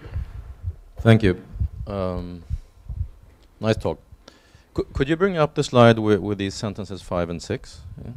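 A man speaks into a microphone in a large hall, with a slight echo.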